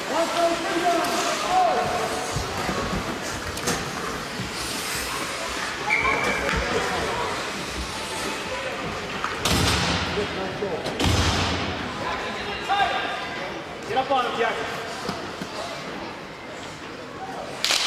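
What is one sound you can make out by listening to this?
A crowd of spectators chatters in an echoing indoor rink.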